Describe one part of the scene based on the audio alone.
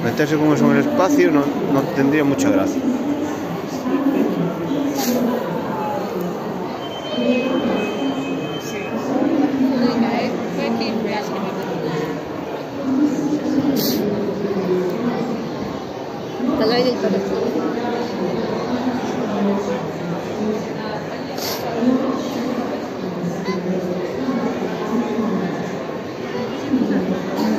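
A crowd of children and adults chatters all around.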